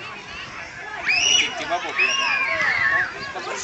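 Young children squeal with high-pitched shrieks.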